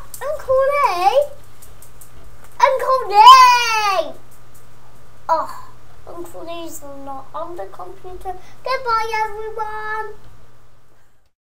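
A young woman talks and laughs softly close by.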